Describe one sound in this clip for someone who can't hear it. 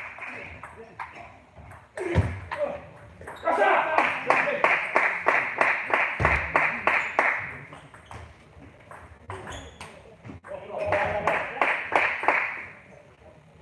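A table tennis ball clicks back and forth between paddles and the table in an echoing hall.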